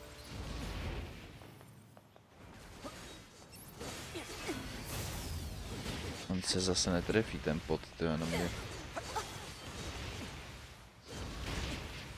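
Explosions burst with a loud boom.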